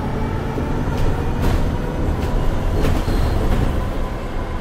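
Loose fittings on a bus rattle and clatter.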